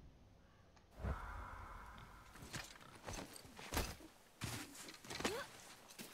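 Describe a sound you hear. Heavy footsteps crunch on snow and rock.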